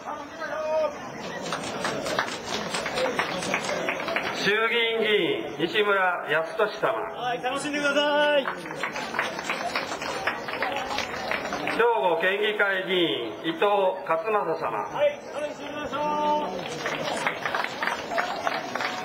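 Music with singing plays loudly over a loudspeaker outdoors.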